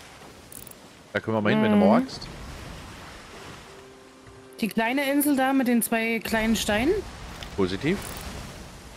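Rough sea waves surge and roll.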